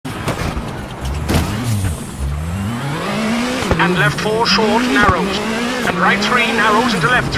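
A rally car engine revs hard and changes gear.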